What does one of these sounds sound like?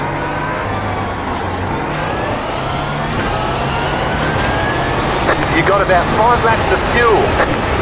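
A racing car engine revs climb as the car speeds up again.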